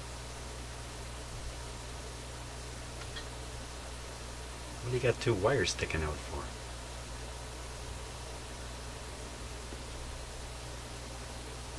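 Fingers handle and rustle stiff wires.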